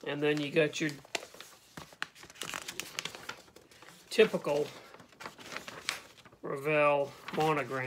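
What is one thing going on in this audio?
Paper rustles as a man unfolds a sheet.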